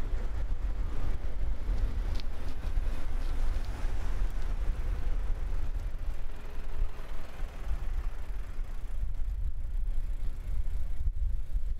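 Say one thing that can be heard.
Truck engines rumble close by in passing traffic.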